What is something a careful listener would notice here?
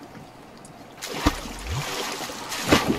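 A wooden pole splashes and swishes through water.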